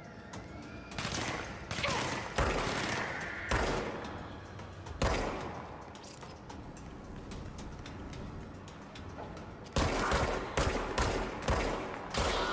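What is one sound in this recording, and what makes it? Pistol shots ring out loudly, echoing in a large hard room.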